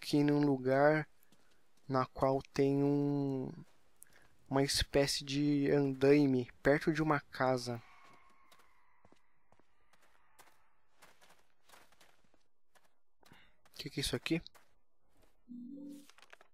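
Footsteps crunch slowly over rough ground.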